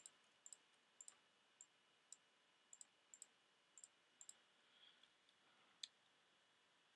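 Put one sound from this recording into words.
Sharp little clicks come quickly as items are moved around a menu.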